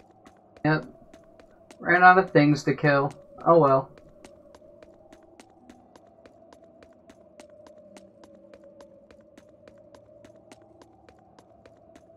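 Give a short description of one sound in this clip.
Footsteps tap quickly and evenly on hard ground.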